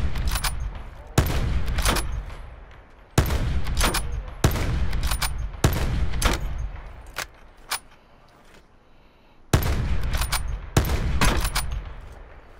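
A rifle fires loudly, single shots and short bursts with booming echoes.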